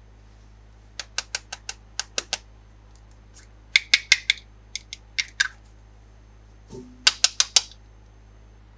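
Plastic toy pieces click and tap together.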